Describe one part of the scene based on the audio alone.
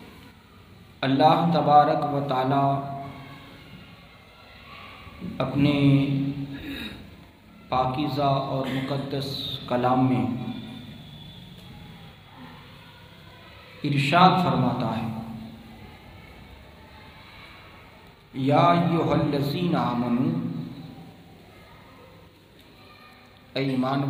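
A man speaks in bursts through a microphone and loudspeaker, pausing between phrases.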